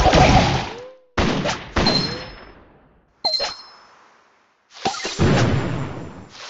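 Video game sound effects burst out in short, loud blasts.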